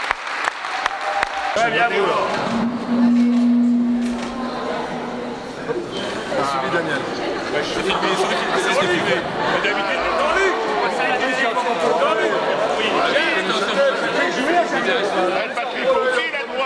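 Several men talk and laugh together in a large echoing hall.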